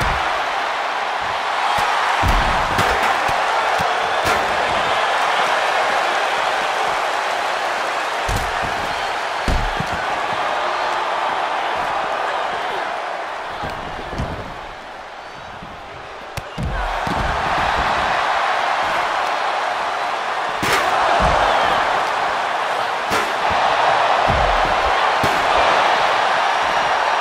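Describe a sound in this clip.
A large crowd cheers loudly in a big arena.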